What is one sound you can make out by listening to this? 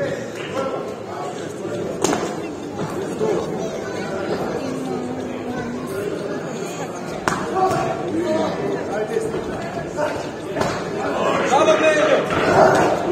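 A crowd of spectators talks and calls out in a large echoing hall.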